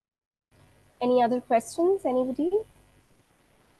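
A young woman speaks calmly through a microphone on an online call.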